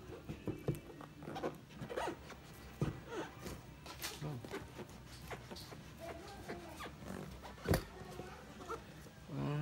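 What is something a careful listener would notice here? Hands tap and rub against a cardboard box.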